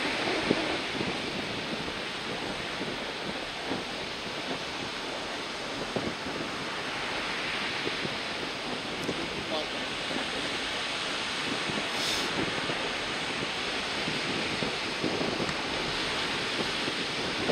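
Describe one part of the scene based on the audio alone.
Choppy waves splash and break close by.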